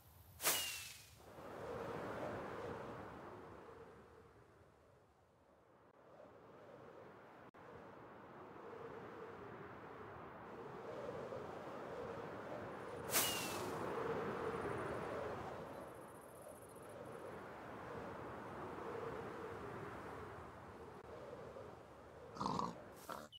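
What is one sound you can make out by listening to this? Wind rushes past steadily while flying through the air.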